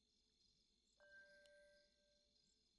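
A short, soft electronic chime sounds once.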